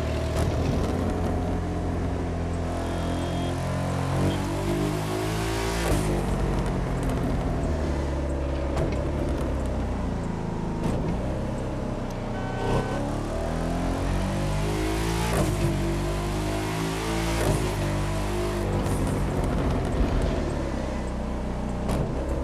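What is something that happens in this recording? A car engine roars loudly, revving up and down as gears shift.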